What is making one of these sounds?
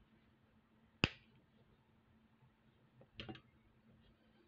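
Metal pliers clack sharply against a table.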